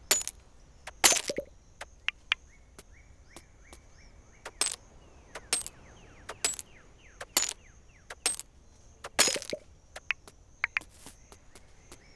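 A pickaxe strikes rock with sharp, repeated clinks.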